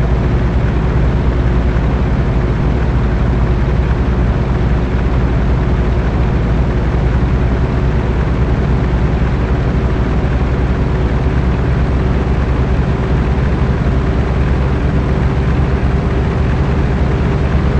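Tyres roll on a dirt road.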